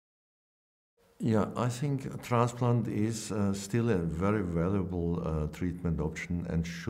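An older man speaks calmly and clearly into a close microphone.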